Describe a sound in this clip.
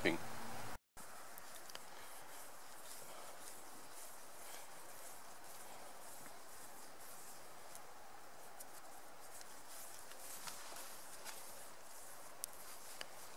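A cord rustles softly between fingers.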